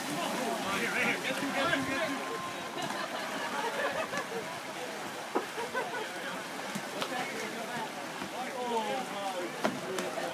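Young men shout to each other at a distance, outdoors.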